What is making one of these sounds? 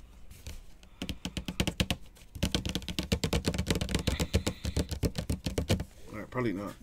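A foil card wrapper crinkles and tears.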